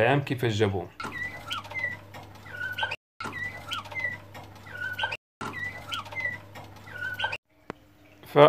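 A canary sings in short, repeated whistling phrases.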